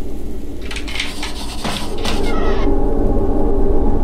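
A door swings open with a creak.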